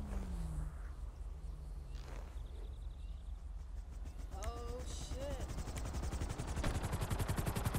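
A helicopter engine idles with rotor blades whirring.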